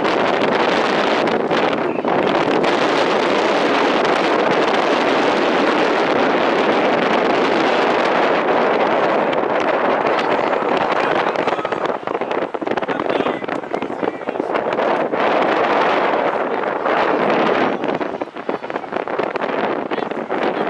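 Wind rushes loudly and steadily outdoors.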